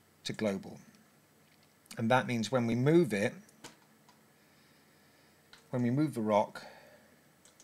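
A man speaks calmly into a close microphone, in short phrases.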